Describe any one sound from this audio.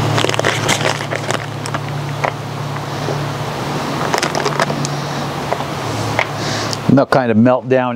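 Foil crinkles and rustles as it is handled.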